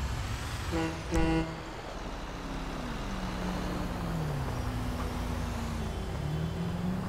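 A truck engine rumbles as the truck drives past.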